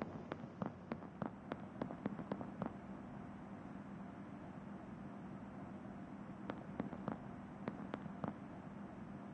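Quick footsteps tap across a wooden floor.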